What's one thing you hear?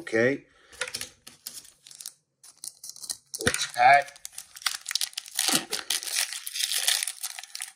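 A foil wrapper crinkles and rustles.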